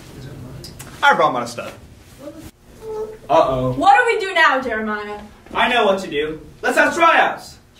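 Young people talk and laugh nearby.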